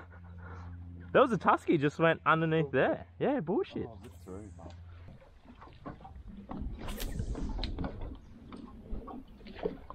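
Water laps gently against a boat.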